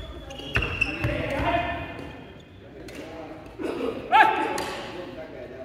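Shoes squeak sharply on a wooden floor in a large echoing hall.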